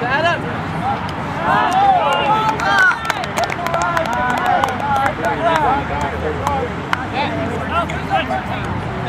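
Several young men shout and call out to each other outdoors.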